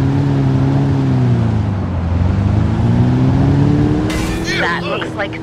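A car engine hums steadily, its pitch dipping and then rising as the car speeds up.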